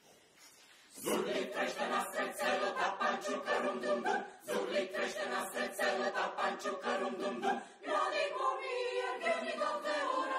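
A mixed choir sings a cappella in a hall.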